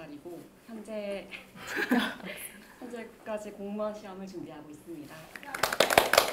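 A young woman speaks cheerfully and laughs close by.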